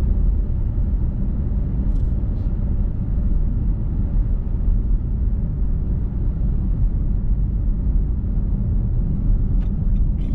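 Tyres rumble low and steady on the road.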